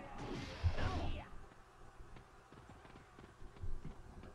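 A polearm blade whooshes through the air.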